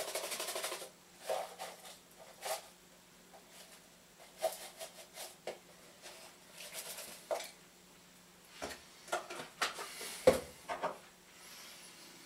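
A jar lid clicks and taps.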